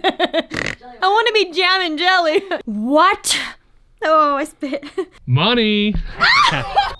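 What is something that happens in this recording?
A woman cackles with laughter.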